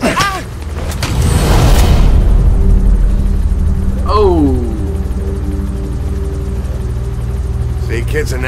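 A helicopter engine hums steadily nearby.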